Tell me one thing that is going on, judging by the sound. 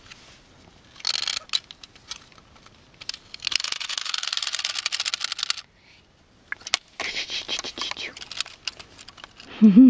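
A plastic toy clatters and rattles.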